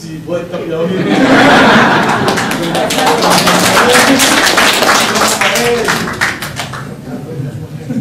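A crowd of men and women laughs loudly.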